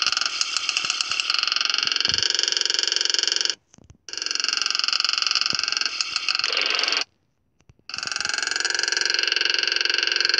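A motorbike engine buzzes and revs steadily.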